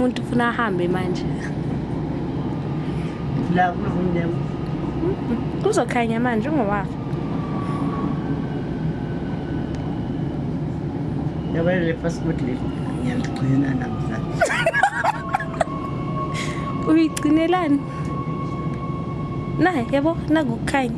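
A train rumbles steadily.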